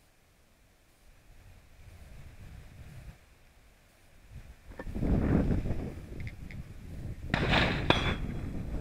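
Wind rumbles across the microphone.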